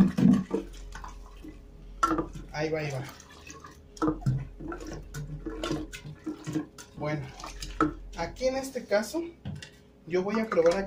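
A plastic scoop stirs and knocks against a glass jar.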